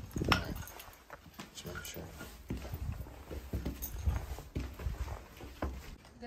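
Footsteps crunch on rubble and grit.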